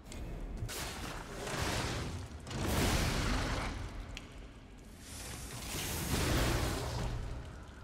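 Fiery explosions crackle and boom.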